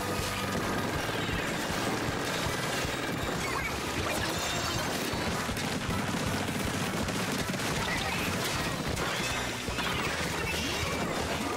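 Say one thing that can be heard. A game's ink blaster fires in rapid bursts with wet splattering.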